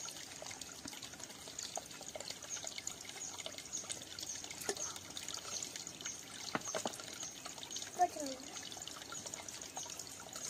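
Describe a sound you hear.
Water splashes softly as a small child's hand dips into a stream.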